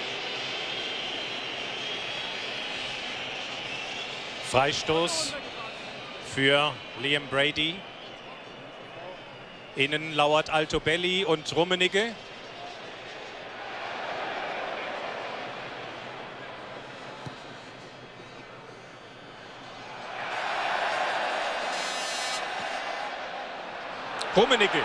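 A large stadium crowd murmurs and roars, swelling loudly at times.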